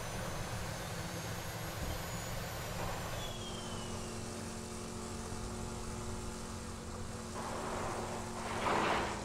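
A vehicle engine rumbles steadily as it drives over sand.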